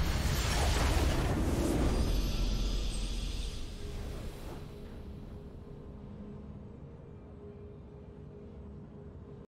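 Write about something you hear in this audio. A triumphant victory fanfare swells and slowly fades.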